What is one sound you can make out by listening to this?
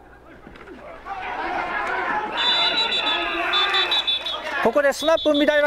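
A crowd of spectators cheers outdoors.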